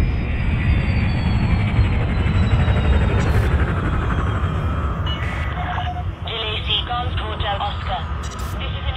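A spaceship engine rumbles deeply and steadily.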